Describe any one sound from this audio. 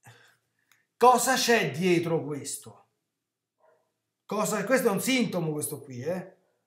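A middle-aged man speaks with animation through a computer microphone, in short bursts.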